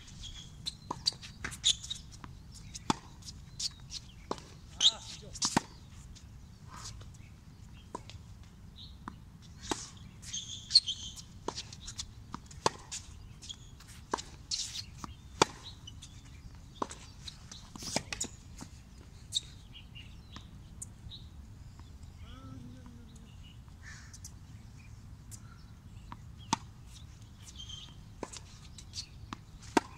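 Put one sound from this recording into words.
A tennis racket strikes a ball with sharp pops outdoors.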